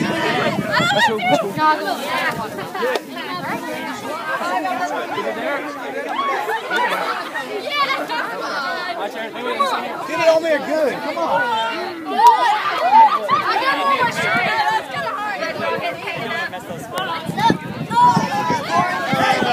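A crowd of children chatter, shout and laugh excitedly outdoors.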